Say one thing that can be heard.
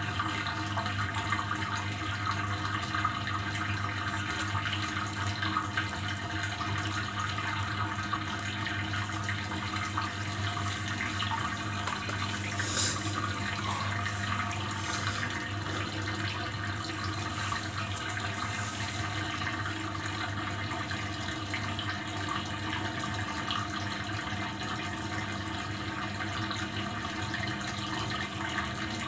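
A front-loading washing machine hums as its drum turns.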